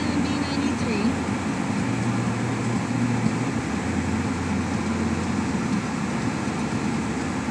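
Tyres roll over a wet road.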